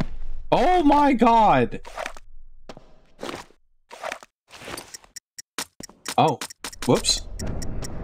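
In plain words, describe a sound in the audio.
Footsteps scuff on a stone floor.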